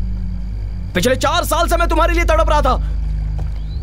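A young man shouts angrily up close.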